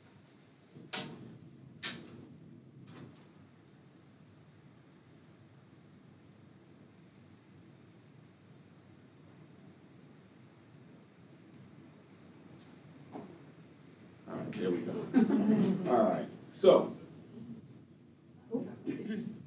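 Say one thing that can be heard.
A man speaks through a microphone, pausing between phrases.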